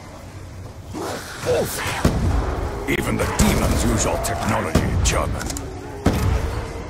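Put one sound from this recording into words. A zombie snarls and growls up close.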